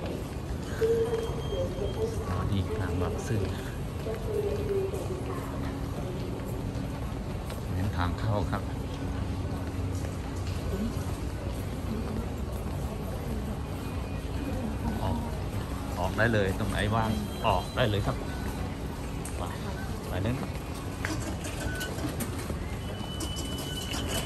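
Voices murmur around a large echoing hall.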